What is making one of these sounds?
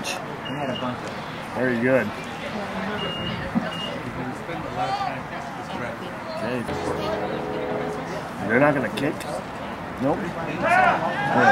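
People talk nearby outdoors.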